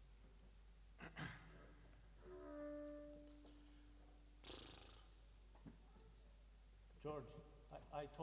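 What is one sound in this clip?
A drummer taps cymbals and drums lightly.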